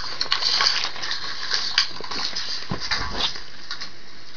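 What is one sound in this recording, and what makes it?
Paper pages rustle and crinkle close by.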